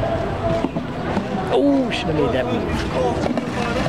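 Large plastic chess pieces knock dully on pavement as they are moved.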